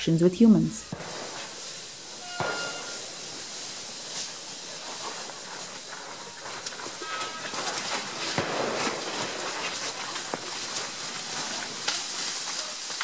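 Heavy elephant feet crunch and shuffle over stones close by.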